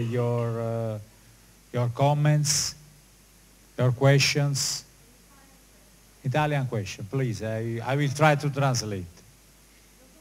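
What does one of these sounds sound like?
A man speaks into a microphone, heard through loudspeakers in a large echoing hall.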